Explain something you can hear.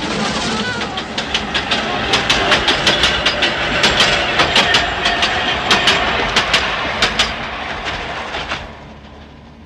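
A train rattles loudly past, with wheels clacking on rail joints.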